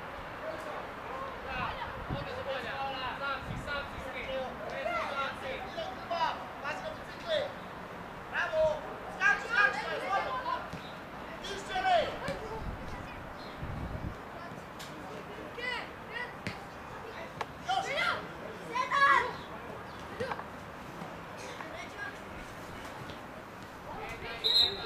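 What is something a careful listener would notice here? Young boys shout and call to each other across an open outdoor pitch.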